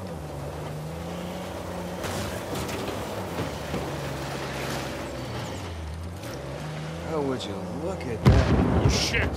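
An engine revs and growls as a vehicle climbs over rough ground.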